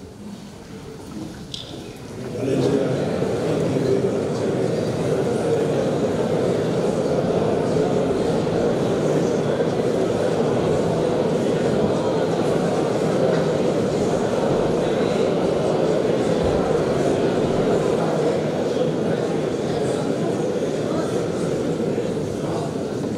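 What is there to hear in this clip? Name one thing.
A man speaks calmly through a microphone and loudspeakers in a large echoing hall.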